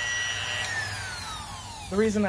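A power router whirs and winds down.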